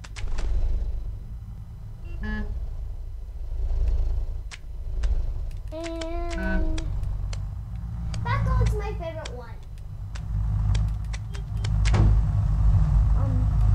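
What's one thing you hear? Short clicky hop sounds come again and again from a video game.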